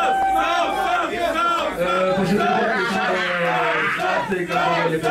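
A young man raps quickly and forcefully into a microphone, heard through loudspeakers.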